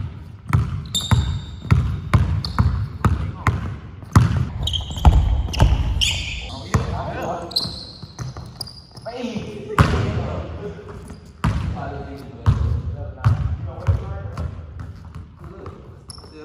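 A basketball bounces hard on a wooden floor in an echoing hall.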